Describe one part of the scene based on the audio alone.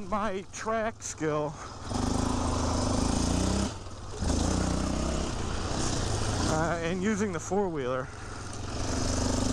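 A quad bike engine revs and drones loudly as it rides over grass.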